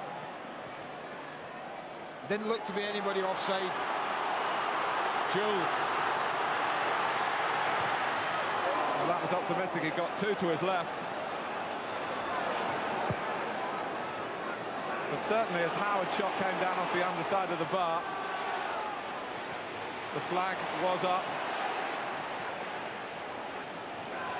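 A large stadium crowd roars and chants steadily outdoors.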